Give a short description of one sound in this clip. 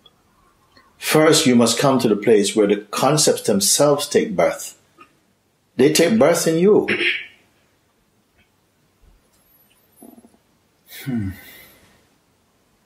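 A middle-aged man speaks calmly and thoughtfully, close to the microphone, with pauses.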